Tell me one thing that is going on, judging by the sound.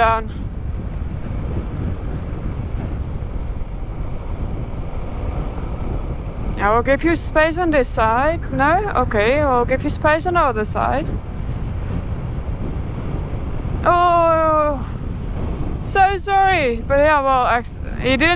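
Wind rumbles steadily against a moving motorcycle.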